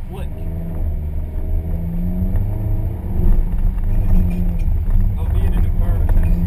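A car engine roars and revs up and down inside the cabin.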